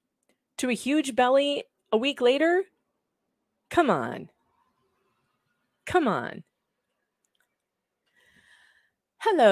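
A woman speaks with animation into a close microphone, in short bursts.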